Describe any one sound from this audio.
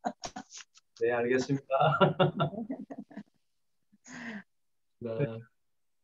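A man speaks and laughs warmly over an online call.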